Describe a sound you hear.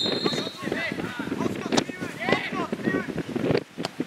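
A football is kicked hard.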